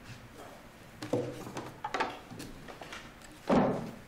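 A wooden case thumps onto a table.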